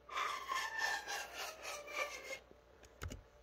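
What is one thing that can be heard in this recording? A breathy pan flute plays a quick run of notes close by.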